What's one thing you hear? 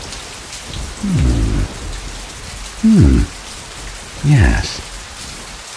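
A middle-aged man speaks in short, low, drawn-out phrases close by.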